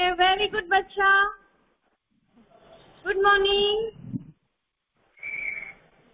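A young boy laughs and speaks close to a phone's microphone.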